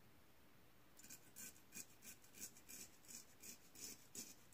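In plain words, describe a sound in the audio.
A razor scrapes through stubble in short, quick strokes.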